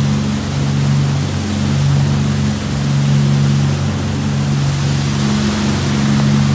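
Water rushes and splashes in the boat's wake.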